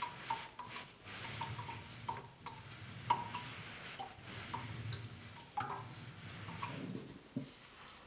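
A blade scrapes back and forth on a wet sharpening stone.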